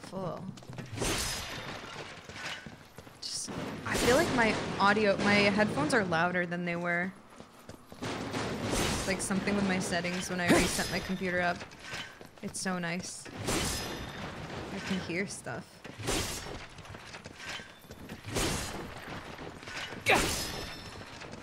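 Swords clash and slash in quick bursts of game combat.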